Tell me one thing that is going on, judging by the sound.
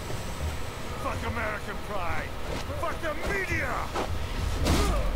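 A man shouts angrily.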